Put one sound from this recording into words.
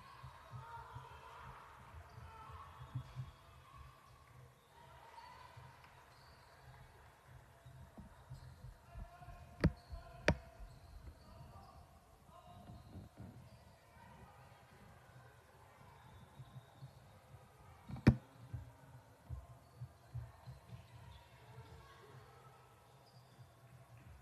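Young girls call out to each other during play.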